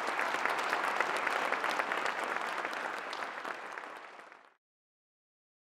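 An audience applauds and slowly dies down.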